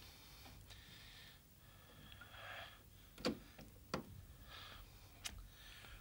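A door handle rattles.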